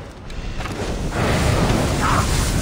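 A burst of fire roars and crackles.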